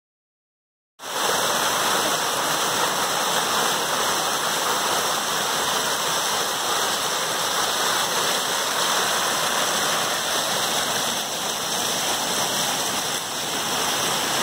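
A waterfall splashes and rushes steadily over rocks close by.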